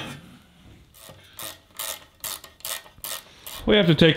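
A ratchet wrench clicks quickly.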